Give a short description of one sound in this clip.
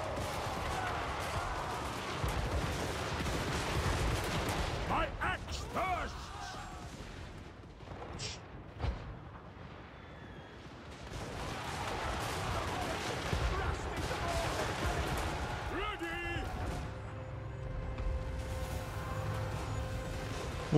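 Battle noise of clashing weapons rumbles.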